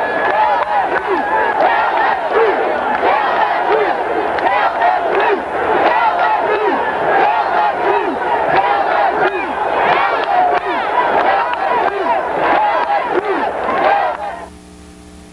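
A large outdoor crowd chants and shouts loudly.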